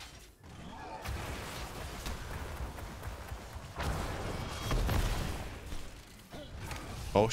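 Magic blasts and clashing weapons crackle in a fast fight.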